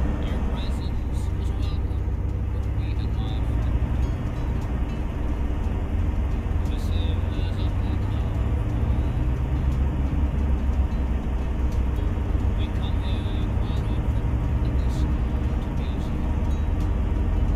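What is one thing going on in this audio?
A truck engine rumbles low and steady while driving.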